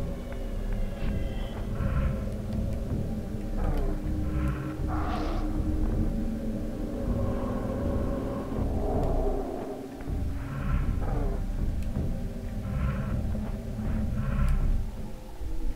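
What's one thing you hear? Magical chimes shimmer in short bursts.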